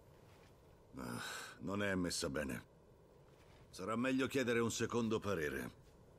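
A man speaks in a low, calm voice up close.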